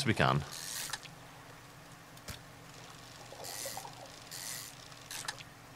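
Water splashes in short bursts.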